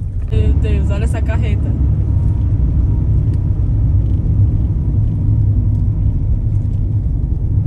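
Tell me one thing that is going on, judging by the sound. Wind and road noise rumble steadily from a moving car.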